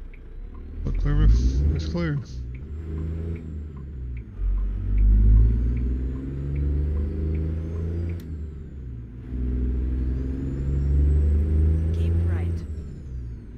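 A truck engine rumbles steadily, rising and falling in pitch as it shifts gears.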